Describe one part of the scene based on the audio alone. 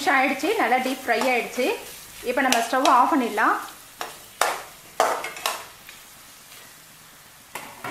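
A metal spatula scrapes and clatters against a metal pan.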